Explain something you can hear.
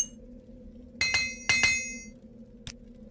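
Short bright chimes ring out.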